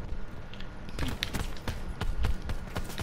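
Gunshots crack in quick bursts nearby.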